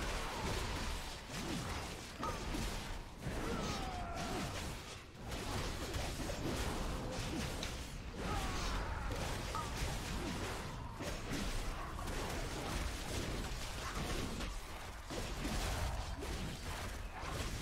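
Spell effects crackle and boom in a game battle.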